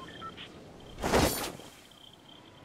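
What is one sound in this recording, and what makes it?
A glider snaps open with a loud whoosh.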